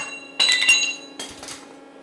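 A hot metal piece clanks and rings on an anvil.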